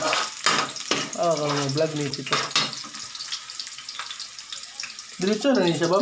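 A metal spatula scrapes and clicks against a wok.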